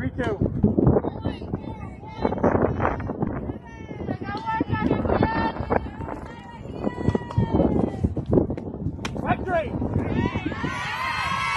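Young women shout and cheer outdoors.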